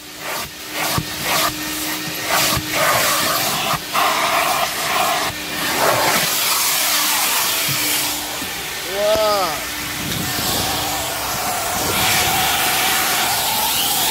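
A vacuum cleaner roars steadily through a hose.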